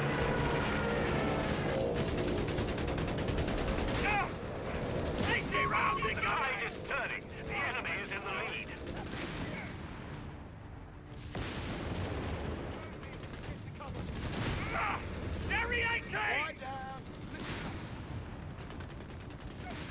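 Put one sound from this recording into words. Gunfire and explosions rumble across a battlefield.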